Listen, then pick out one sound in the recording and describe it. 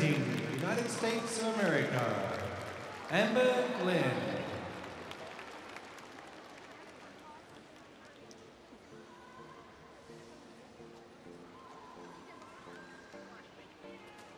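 A large crowd applauds in a big echoing arena.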